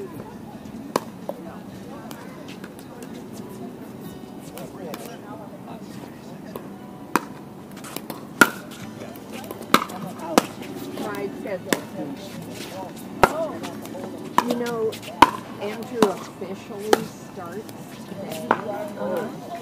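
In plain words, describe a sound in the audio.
Paddles strike a plastic ball with sharp, hollow pops.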